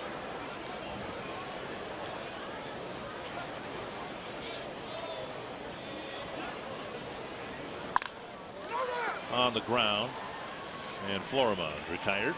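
A stadium crowd murmurs.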